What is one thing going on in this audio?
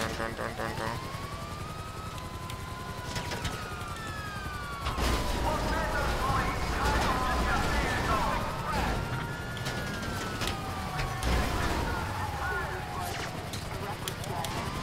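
A siren wails up and down nearby.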